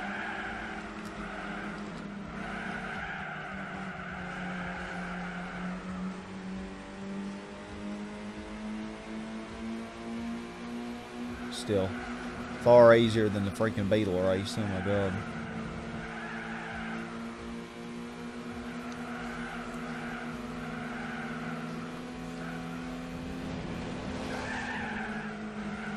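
A car engine hums steadily and shifts pitch as it speeds up and changes gear.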